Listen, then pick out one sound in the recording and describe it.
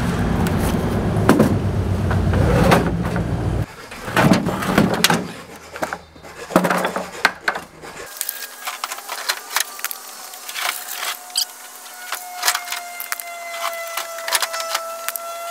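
Plastic buckets knock and clatter as they are lifted and set down.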